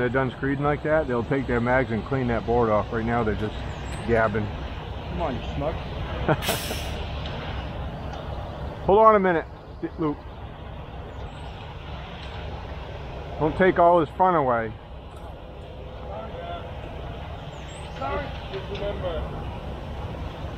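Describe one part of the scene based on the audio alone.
A concrete truck engine rumbles nearby.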